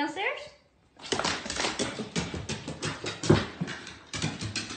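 A dog's paws patter quickly up wooden stairs.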